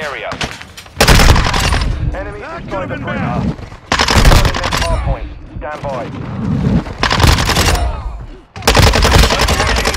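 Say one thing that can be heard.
A rifle fires loudly in rapid bursts.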